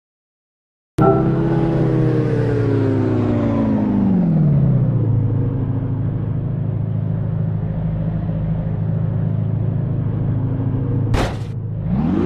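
A car engine idles, revs and then falls back to a steady idle.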